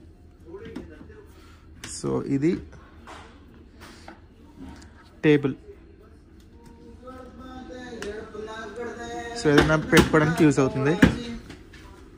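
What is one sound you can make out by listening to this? A plastic tray clicks and clacks as it folds open and shut.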